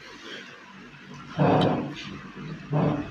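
A man yawns loudly nearby.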